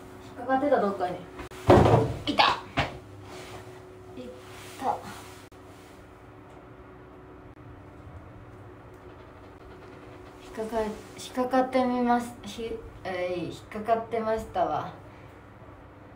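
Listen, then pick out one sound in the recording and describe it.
A young woman speaks close to the microphone through a face mask.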